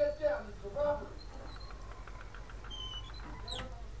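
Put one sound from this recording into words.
A door swings shut with a soft knock.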